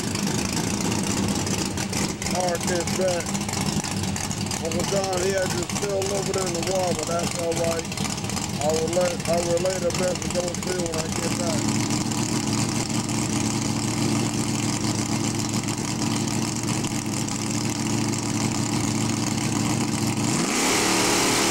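A car engine rumbles loudly at idle close by.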